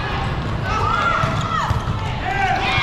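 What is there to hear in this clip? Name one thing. A volleyball is struck with a hard slap.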